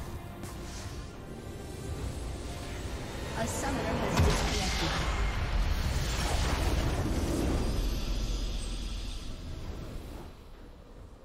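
Fantasy battle effects crackle and boom loudly.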